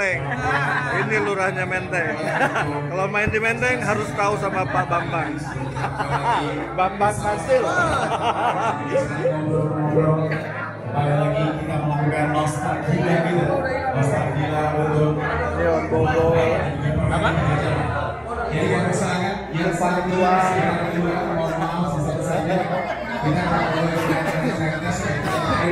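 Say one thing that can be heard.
Several men chat in the background of a room.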